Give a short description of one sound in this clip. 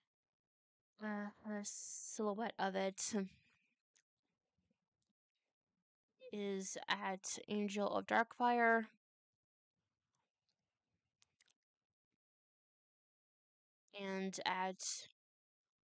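A young woman speaks close to a desk microphone, in short bursts.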